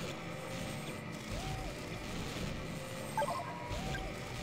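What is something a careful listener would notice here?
Short electronic beeps chime from a game menu.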